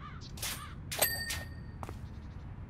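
A short bright chime rings once.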